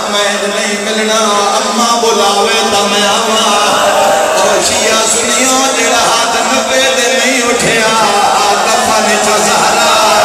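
A crowd of men chants along loudly.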